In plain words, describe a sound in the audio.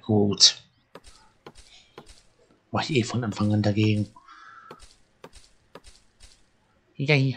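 An axe chops wood with short, sharp knocks.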